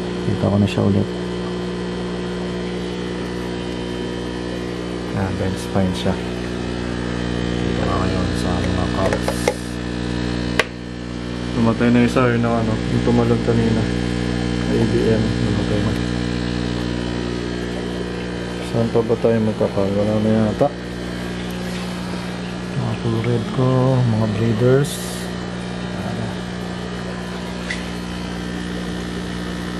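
Aquarium air pumps hum steadily.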